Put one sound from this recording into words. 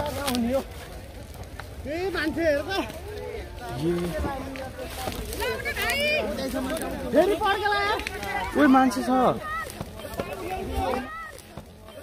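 Men talk excitedly nearby.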